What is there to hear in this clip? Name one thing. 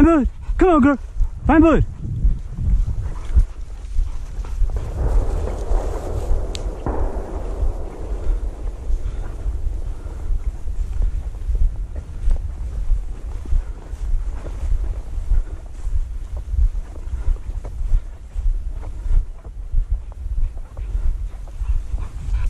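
Footsteps crunch through frosty grass.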